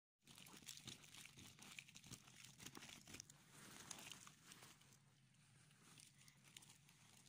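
Plastic jelly cups clatter and rustle as hands sort through them.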